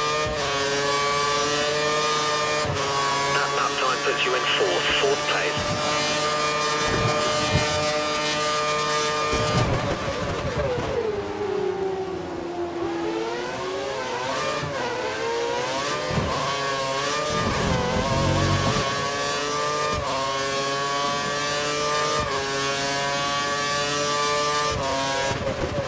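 A racing car engine screams at high revs, dropping in pitch while braking and rising again as the car accelerates.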